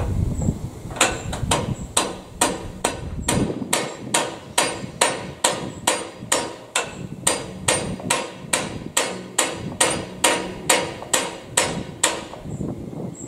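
A metal tool clicks rapidly and evenly against a machine.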